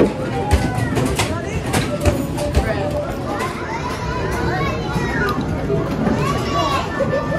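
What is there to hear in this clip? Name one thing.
Arcade machines chime and play electronic jingles all around.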